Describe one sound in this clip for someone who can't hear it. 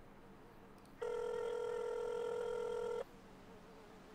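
A phone ringback tone sounds steadily.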